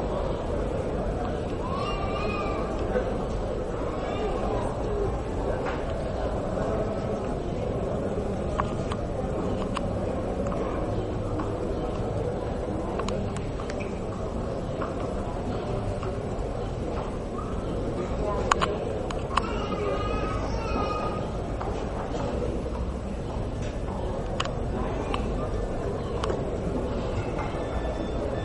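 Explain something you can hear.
A crowd murmurs in a large covered arena.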